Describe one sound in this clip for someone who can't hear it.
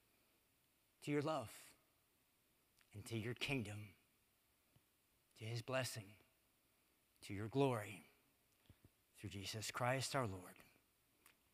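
A man speaks calmly in short phrases through a microphone in a large echoing hall.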